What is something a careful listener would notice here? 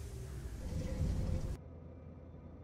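A spaceship engine roars loudly, then cuts off.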